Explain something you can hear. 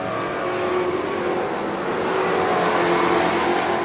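Car tyres skid on a dirt track.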